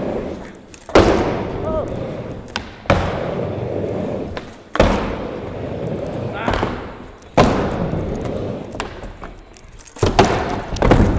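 Skateboard wheels clack hard against the ramp.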